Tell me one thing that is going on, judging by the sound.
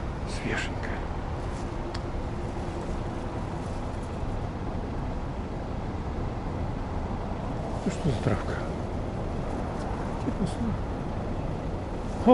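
Tall grass rustles in the wind.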